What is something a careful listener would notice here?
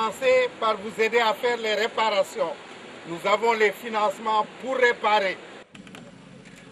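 A man speaks loudly nearby.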